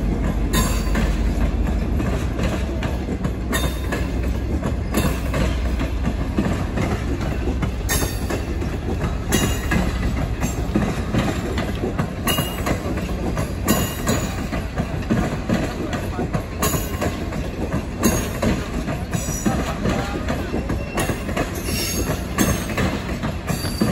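A passenger train rumbles steadily past on the tracks.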